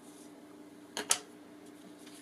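Something knocks once sharply on a table.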